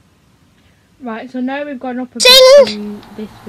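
A small child sings.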